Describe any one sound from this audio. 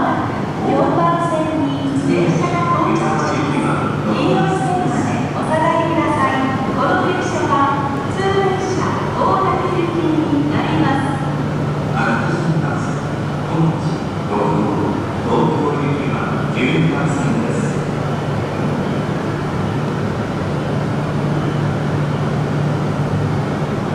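A train rumbles slowly toward the platform.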